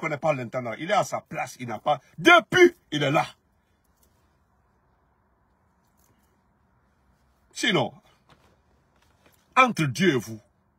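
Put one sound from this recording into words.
A man speaks with animation close to a phone microphone, in short bursts with pauses.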